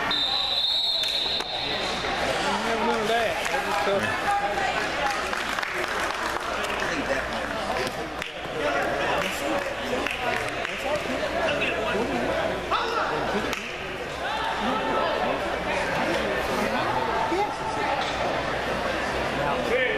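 A crowd of young players and onlookers chatter and shout throughout a large echoing indoor hall.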